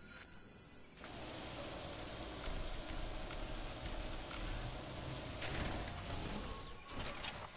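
An electric machine hums and buzzes as it fires a beam.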